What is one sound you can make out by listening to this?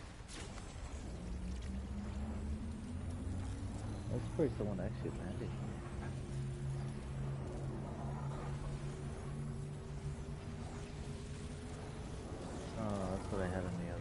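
A machine hums and slowly rises in pitch as it charges up.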